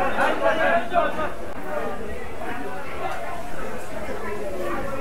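Hot oil sizzles steadily in a frying pan.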